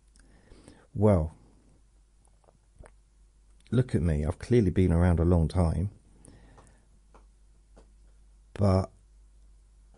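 An older man speaks calmly and close up, in short bursts.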